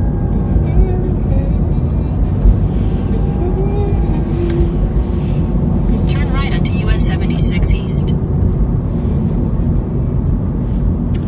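A car hums and rumbles steadily as it drives, heard from inside.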